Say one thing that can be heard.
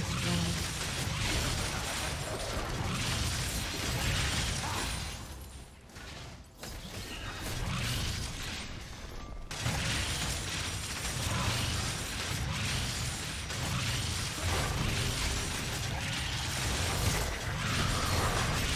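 Video game spell and combat effects whoosh and clash.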